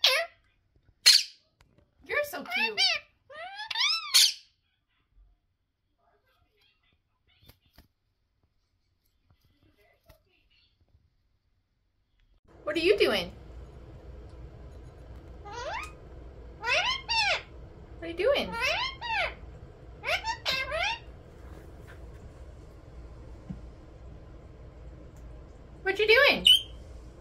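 A parrot squawks and whistles in loud, sliding calls close by.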